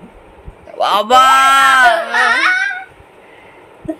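A young girl laughs loudly and excitedly close by.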